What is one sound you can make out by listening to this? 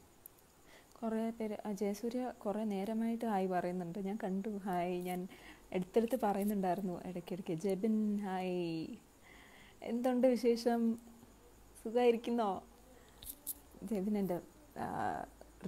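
A young woman speaks with animation, close to a phone microphone.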